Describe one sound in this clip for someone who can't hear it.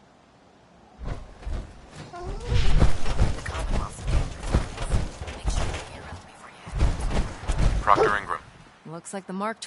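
Heavy armoured footsteps thud and clank on a hard floor.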